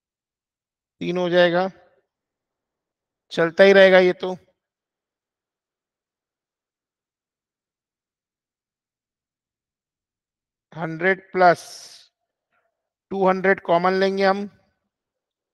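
A man speaks calmly in short phrases through a microphone, as in an online call.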